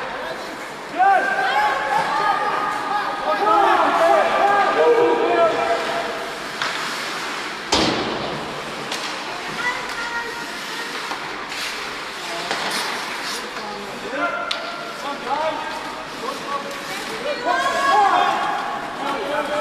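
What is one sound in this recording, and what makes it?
Young men shout to each other across the ice.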